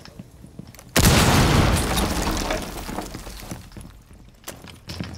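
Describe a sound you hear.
A loud explosion bursts close by and rumbles as it slowly fades.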